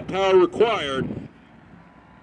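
A man shouts a loud command outdoors.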